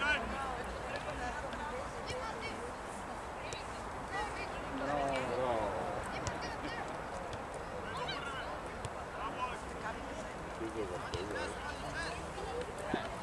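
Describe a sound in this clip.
Young players shout and call out to each other across an open field.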